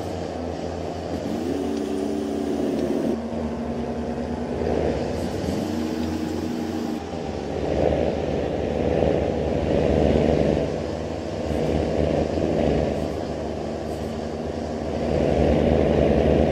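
A bus engine drones steadily, its pitch shifting now and then.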